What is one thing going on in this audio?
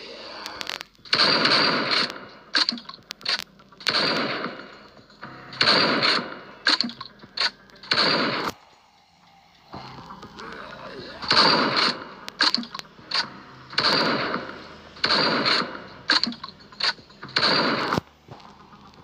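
Gunshots fire in loud, sharp bursts that echo briefly.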